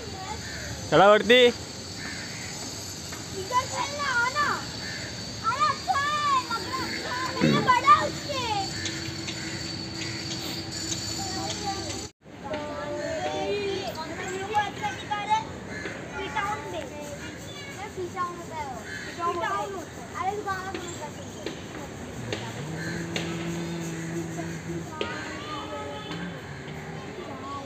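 Children shout and chatter with excitement nearby, outdoors.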